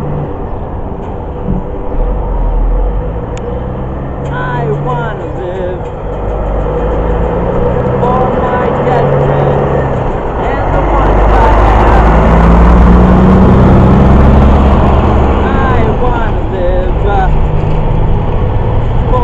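An electric guitar plays loud distorted chords outdoors.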